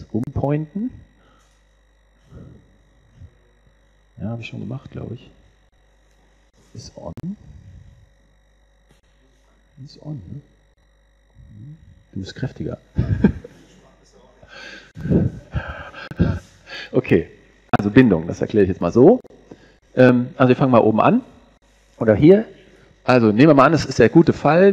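A man speaks calmly into a microphone, heard through loudspeakers in an echoing hall.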